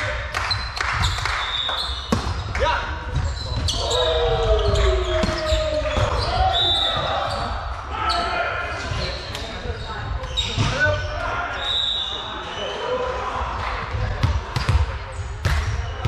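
A ball thumps when players hit it.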